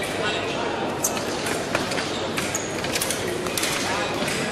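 Blades click and clash together.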